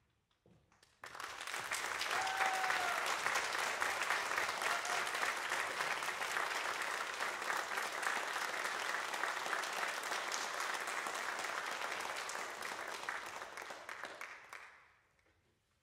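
An audience applauds loudly in a large echoing hall, then the applause fades away.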